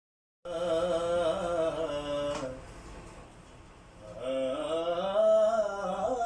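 A man sings close by in a long, drawn-out voice.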